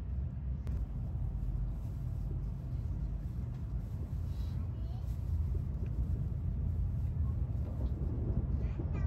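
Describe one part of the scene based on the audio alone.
A train rumbles low and steadily while moving.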